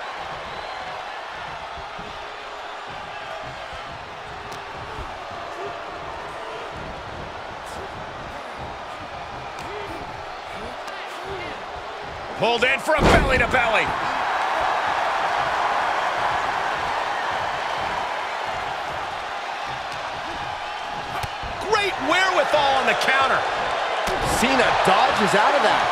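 A large crowd cheers and roars steadily in a big arena, swelling louder partway through.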